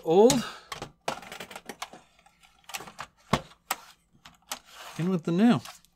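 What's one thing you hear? A circuit board clicks and scrapes as it slides into a computer case.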